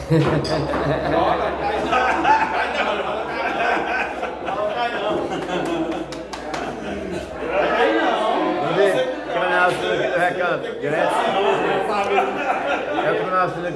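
Several men talk and laugh loudly close by.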